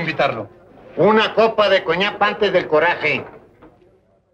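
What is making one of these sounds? An elderly man answers in a rough, raised voice.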